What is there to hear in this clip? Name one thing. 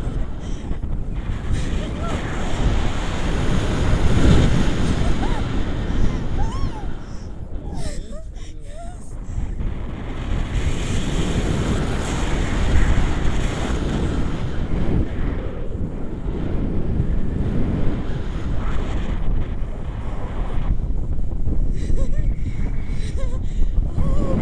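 Strong wind rushes and buffets loudly outdoors.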